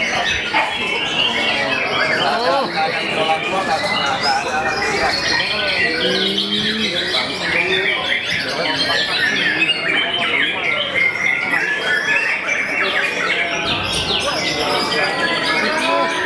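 A songbird sings a loud, busy, warbling song close by.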